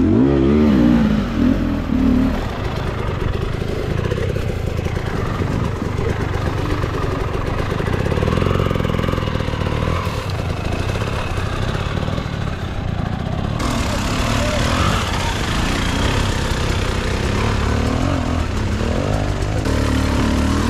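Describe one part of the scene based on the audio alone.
Another dirt bike engine revs hard while climbing.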